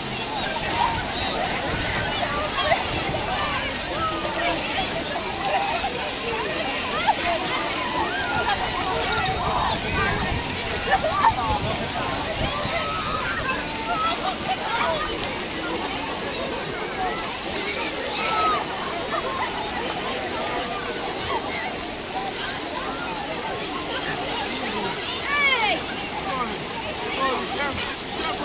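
Water splashes as people swim and play nearby.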